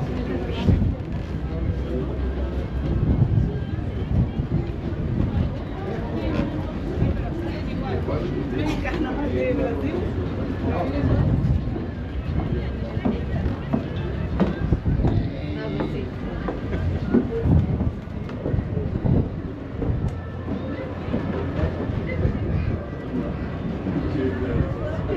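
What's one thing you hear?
A crowd of adults chatter nearby.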